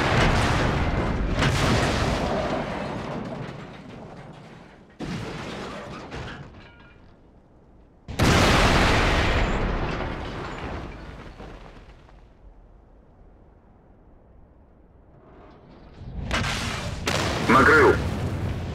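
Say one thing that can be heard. Tank cannons fire in loud booming blasts that roll away.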